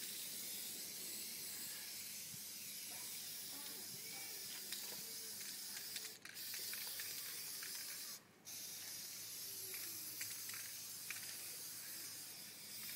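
An aerosol can sprays with a steady hiss that stops briefly now and then.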